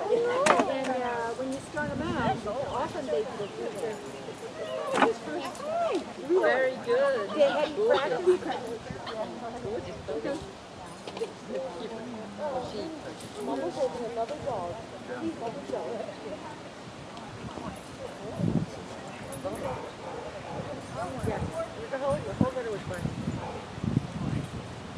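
A woman speaks brightly and encouragingly nearby, outdoors.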